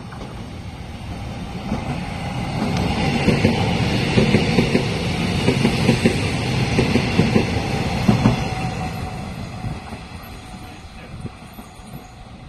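A passing train rumbles loudly past close by, then fades.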